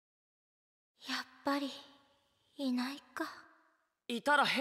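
A young woman speaks softly and sadly.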